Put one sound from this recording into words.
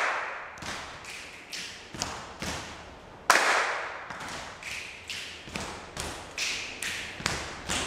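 A group of people clap their hands in a slow, uneven rhythm, echoing in a bare room.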